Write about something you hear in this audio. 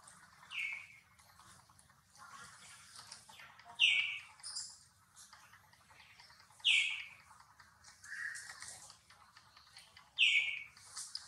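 A baby monkey squeaks in short, high cries again and again.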